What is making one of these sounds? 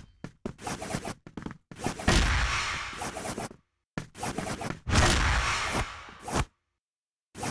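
Pistols fire in quick bursts of loud shots.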